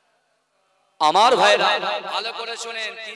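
A young man sings loudly into a microphone, heard through loudspeakers.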